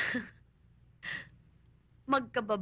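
A young woman speaks cheerfully close by.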